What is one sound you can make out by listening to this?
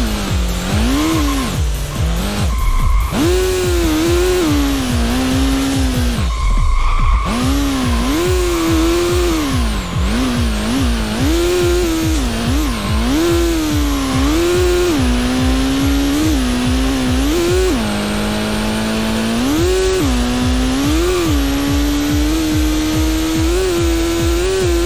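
A racing car engine roars, revving up and dropping with each gear change.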